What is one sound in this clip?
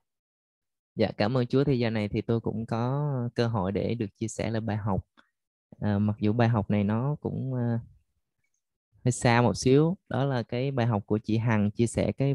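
A young man sings into a microphone, heard over an online call.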